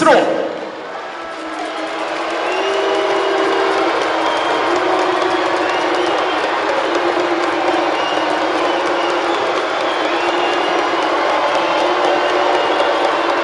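A large crowd chants and cheers in an echoing arena.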